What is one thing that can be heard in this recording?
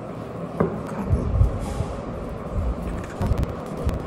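A knife cuts through soft dough.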